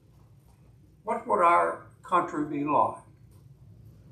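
A middle-aged man speaks with emphasis through a microphone.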